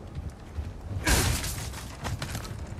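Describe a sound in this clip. A wooden crate smashes apart with a loud crack.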